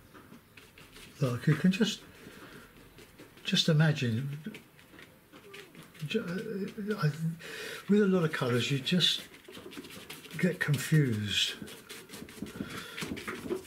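A brush dabs and scrubs softly on paper.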